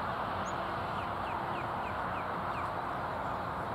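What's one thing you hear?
A bald eagle gives a short series of high chittering calls in the distance.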